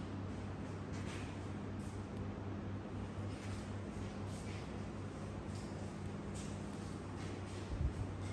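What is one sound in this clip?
Footsteps fall softly on a tiled floor.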